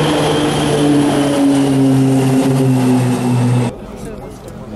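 Several propeller planes drone loudly overhead in formation.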